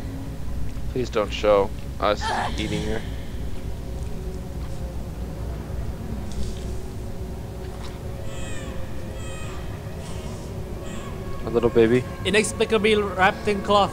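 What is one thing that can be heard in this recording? A woman speaks slowly in a low, menacing voice.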